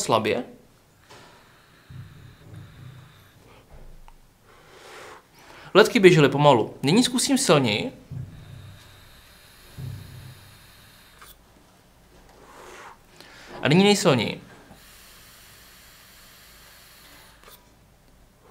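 A man draws on a vape with a soft hiss.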